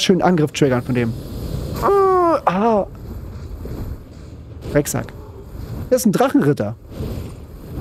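Swords clash and magic blasts in a game battle.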